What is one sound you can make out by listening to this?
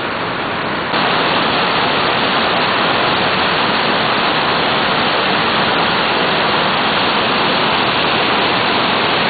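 Churning rapids roar loudly up close.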